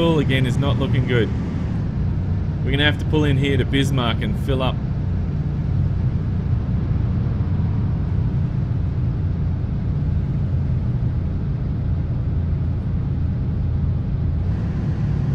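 A truck engine rumbles steadily.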